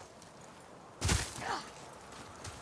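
An axe thuds into a statue.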